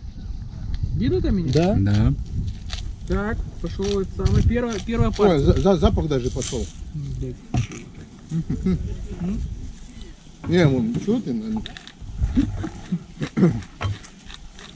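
A second man talks and laughs nearby.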